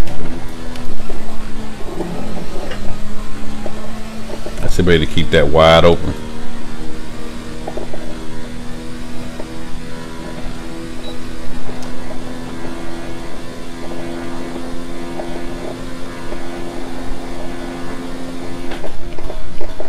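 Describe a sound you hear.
A racing car engine whines steadily at high speed.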